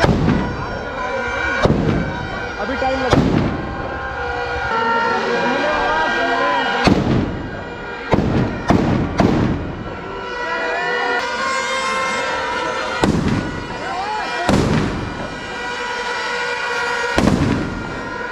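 Firecrackers burst with loud sharp bangs.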